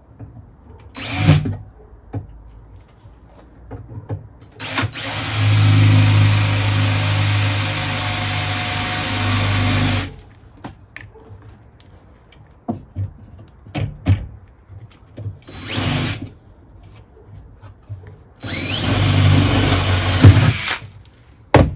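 A power drill whirs in loud bursts.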